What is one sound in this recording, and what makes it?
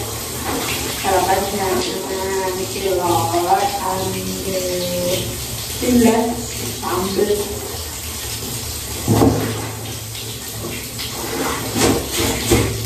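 Wet clothes slosh and splash in water.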